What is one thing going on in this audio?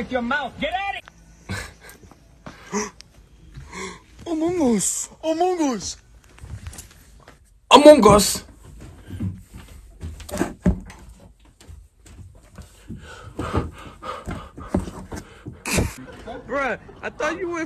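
A man laughs and talks into a headset microphone.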